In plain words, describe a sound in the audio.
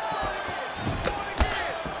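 A kick lands with a heavy thud on bare skin.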